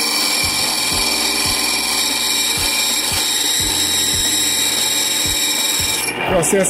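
A grinding machine motor hums steadily.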